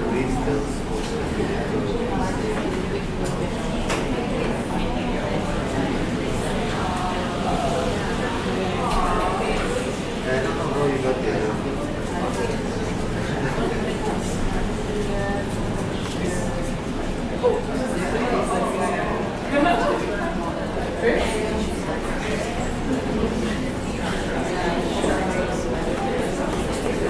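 Keys clatter on a laptop keyboard.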